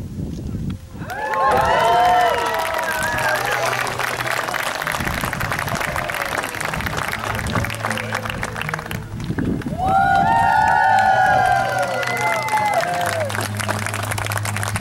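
A crowd claps and applauds loudly.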